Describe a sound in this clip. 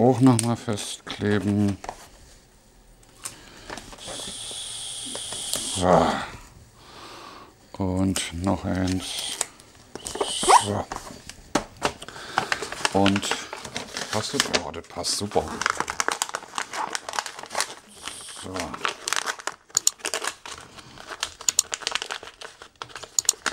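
Wrapping paper crinkles and rustles as it is folded.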